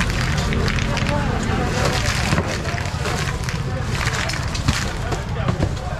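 Fish slide and slap as a crate is tipped out.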